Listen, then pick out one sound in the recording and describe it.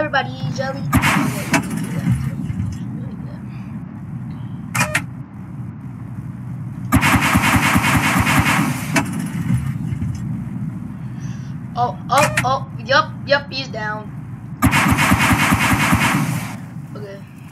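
Video-game anti-aircraft guns fire in rapid bursts.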